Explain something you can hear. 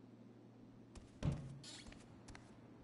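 A door opens with a dull thud.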